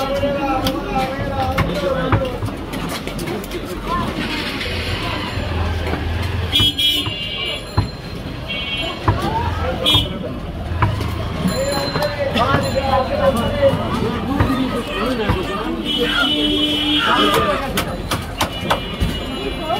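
Fish flesh is pressed and sliced against a curved blade with wet thuds.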